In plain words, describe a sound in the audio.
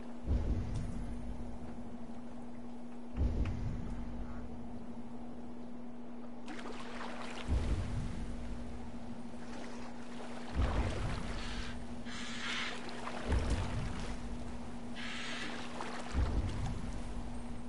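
Water laps and sloshes against a small wooden boat.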